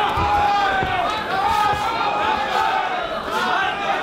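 Punches thud against a fighter's body and gloves.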